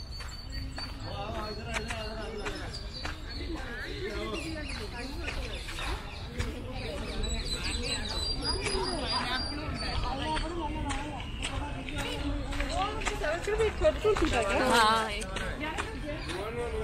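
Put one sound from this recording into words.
Several women and a young man chat in a group nearby, outdoors.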